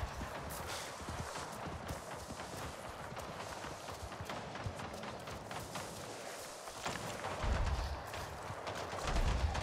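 Leaves and ferns rustle as something pushes through thick undergrowth.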